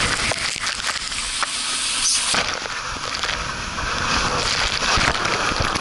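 Water rushes and splashes loudly around a rider sliding down a tube.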